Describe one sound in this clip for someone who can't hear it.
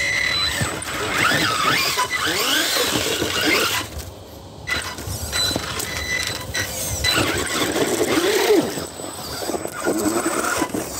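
Toy tyres scrape and grind over rock.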